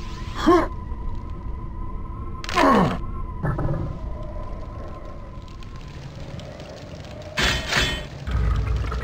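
A short electronic chime sounds as an item is picked up.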